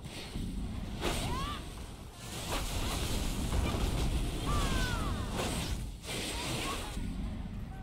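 Sword blows strike and slash in combat.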